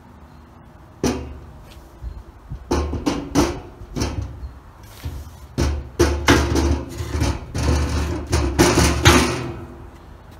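A metal tank scrapes and clunks as it is shifted onto a metal frame.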